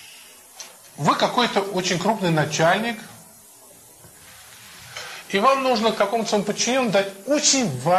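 An elderly man speaks calmly and warmly up close.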